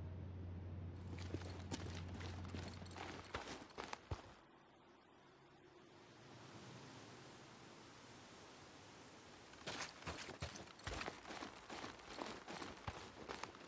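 Footsteps crunch on gravel and debris.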